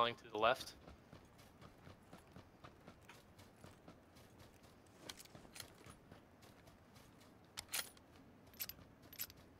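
Footsteps rustle quickly through grass.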